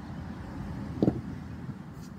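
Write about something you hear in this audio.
A kettlebell knocks once against a hard floor.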